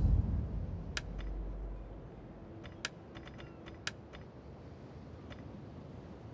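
Short interface clicks sound as menus open and close.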